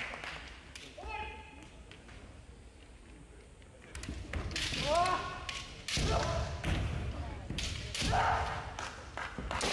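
Kendo fencers shout loud, drawn-out battle cries.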